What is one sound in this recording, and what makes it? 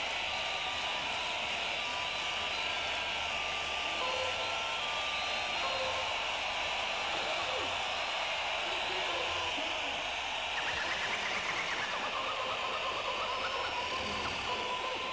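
Electronic dance music plays loudly and steadily.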